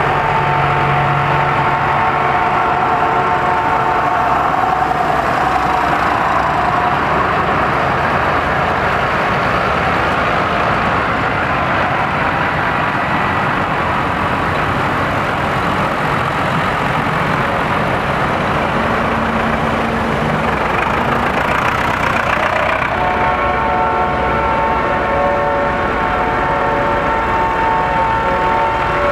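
Tractor engines rumble loudly as a long line of tractors drives past close by.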